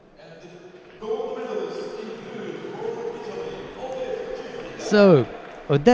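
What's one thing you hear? A crowd cheers and applauds in a large echoing arena.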